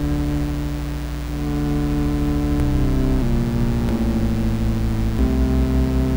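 Synthesized music plays steady, deep sustained chords that change every second or so.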